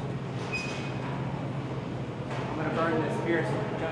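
Footsteps ring on a metal walkway.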